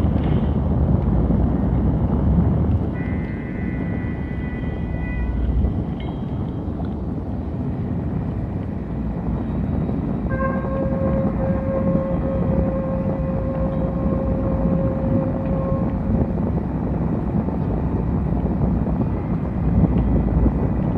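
Electronic music with a deep, rumbling low end plays steadily from synthesizers.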